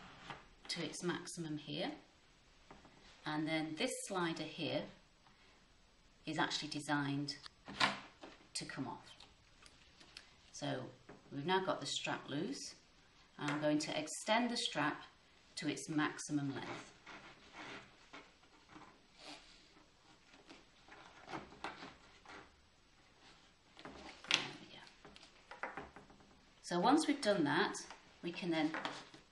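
A woman speaks calmly and clearly, close by, as if explaining.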